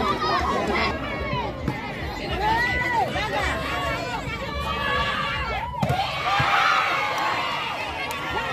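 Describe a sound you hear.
A large outdoor crowd cheers and shouts excitedly.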